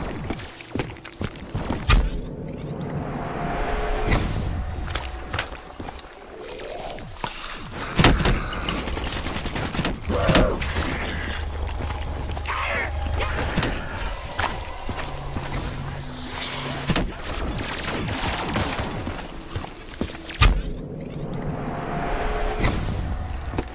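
A portal whooshes and roars.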